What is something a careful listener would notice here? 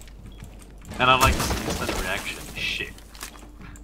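Splintered wood and plaster crack and fall.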